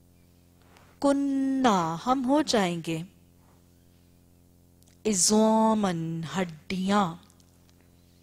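A woman chants melodically into a microphone in two long phrases.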